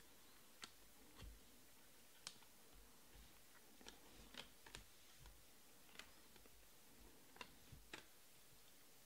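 Trading cards flick and snap against each other as they are shuffled by hand.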